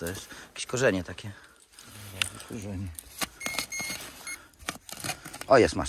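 A shovel scrapes and digs into dry soil.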